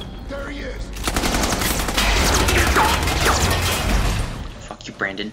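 Gunfire rattles loudly.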